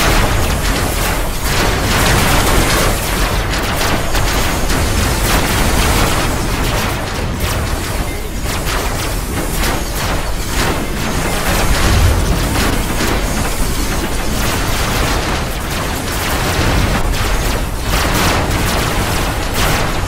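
Laser weapons zap and crackle in rapid bursts.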